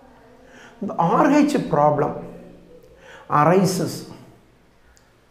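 A middle-aged man speaks calmly and slowly into a close microphone.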